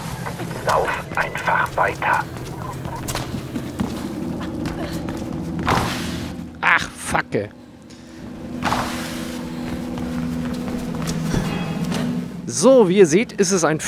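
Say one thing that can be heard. Quick footsteps run on a hard floor.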